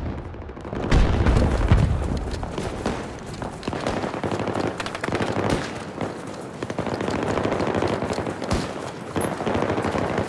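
Footsteps crunch on frozen gravel.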